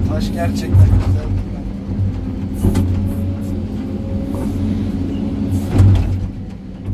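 Rocks and rubble clatter and knock in an excavator bucket.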